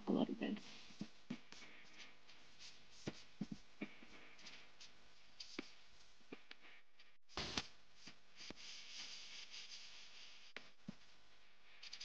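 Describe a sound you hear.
Plastic sheeting crinkles and rustles under a hand.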